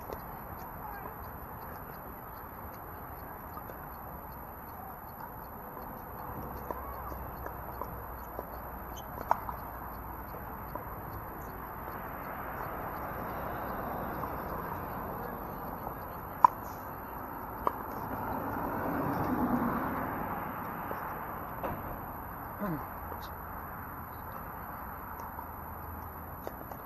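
Paddles strike plastic balls with sharp pops, near and far.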